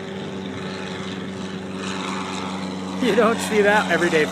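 A small propeller plane drones overhead, growing louder.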